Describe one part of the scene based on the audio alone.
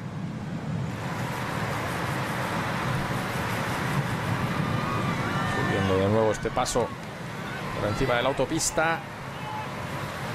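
Spectators cheer and shout at the roadside.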